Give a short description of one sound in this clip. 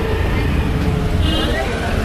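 A motorcycle engine rumbles past.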